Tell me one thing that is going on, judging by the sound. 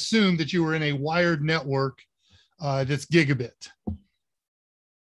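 An older man speaks calmly through an online call microphone.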